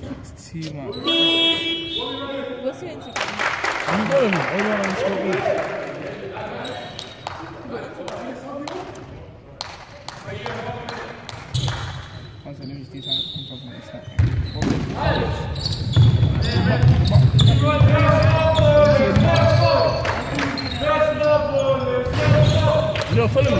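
Sneakers squeak on the hall floor.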